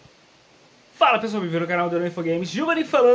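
A young man talks with animation close to the microphone.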